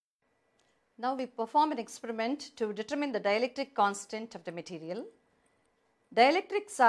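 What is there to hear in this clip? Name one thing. An older woman speaks calmly and clearly, close by.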